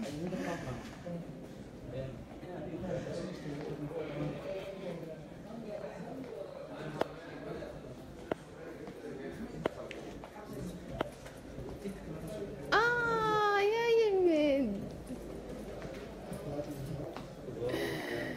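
Several men talk in an echoing hallway.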